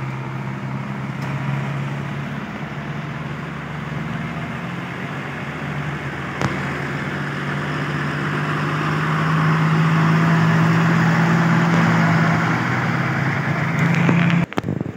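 A heavy tractor engine hums steadily as it pulls loaded trailers along a road.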